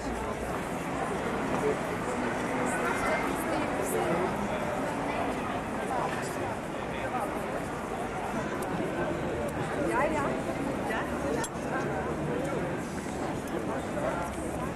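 A crowd of young people chatters all around outdoors.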